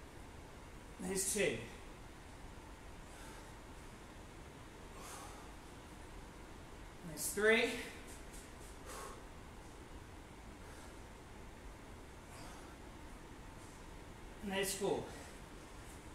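A man grunts with effort close by.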